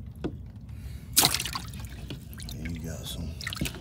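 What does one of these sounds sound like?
Water splashes lightly in a tub.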